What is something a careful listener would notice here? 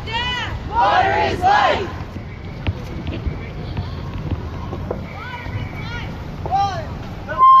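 A crowd of men and women chant loudly outdoors.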